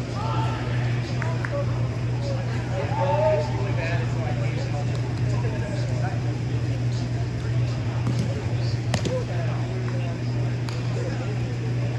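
Young men call out and chatter in a large echoing hall.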